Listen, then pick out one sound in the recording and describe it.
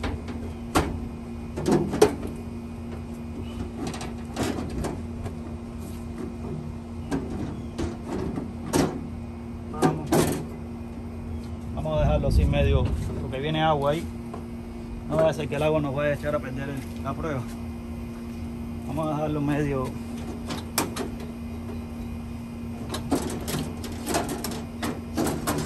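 Hands knock and tap against a metal appliance casing.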